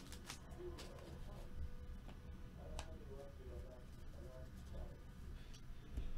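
Trading cards shuffle and rub against each other.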